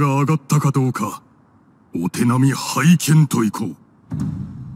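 A young man speaks calmly and teasingly.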